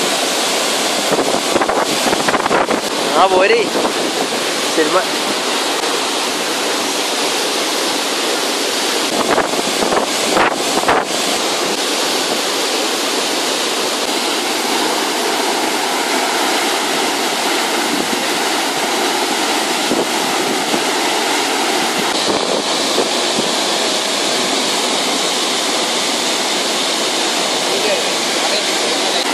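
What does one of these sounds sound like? A waterfall roars loudly and steadily outdoors.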